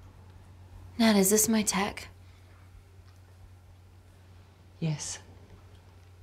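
A woman speaks calmly and briefly nearby.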